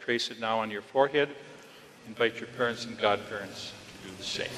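An elderly man speaks calmly, his voice echoing in a large hall.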